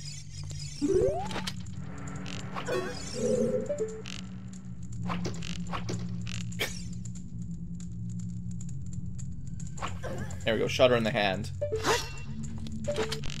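Footsteps patter quickly on a stone floor.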